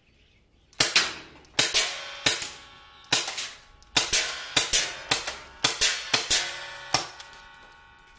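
An airsoft pistol fires rapid sharp shots with a metallic ring.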